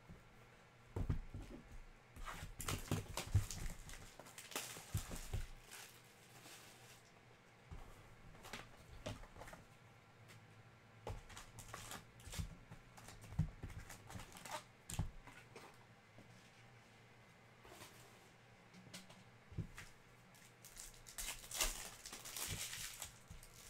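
Cardboard packs tap and knock on a table.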